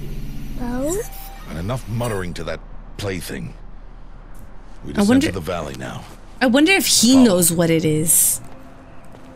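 A man speaks in a deep, gruff voice.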